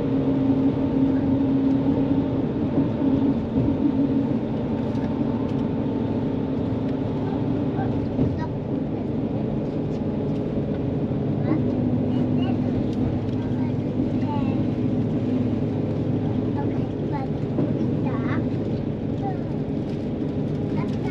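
A bus engine hums steadily while driving on a highway.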